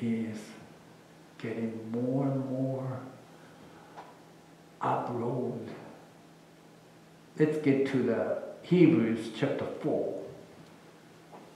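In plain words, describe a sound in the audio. A man speaks calmly through a microphone in a large echoing room.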